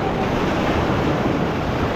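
A paddle splashes into the water.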